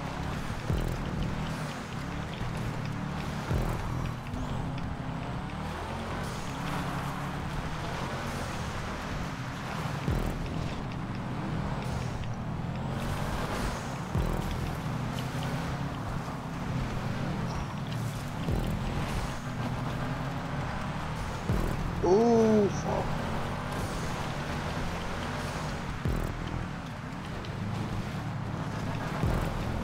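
A rally car engine roars steadily as the car races along.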